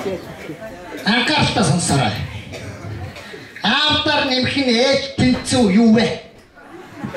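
A young man talks loudly and with animation close by.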